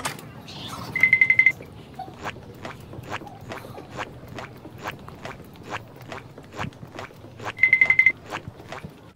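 Sneaker soles squeak sharply on the floor.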